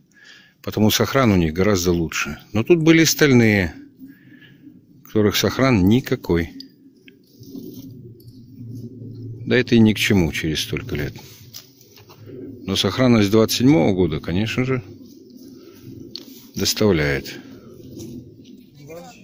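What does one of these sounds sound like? Hands scrape through loose soil.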